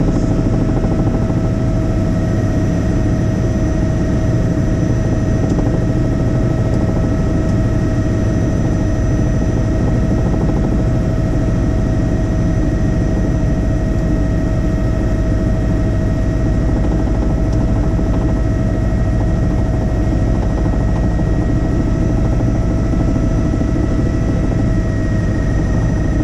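A helicopter's engine and rotor roar loudly and steadily from inside the cabin, with a constant whine.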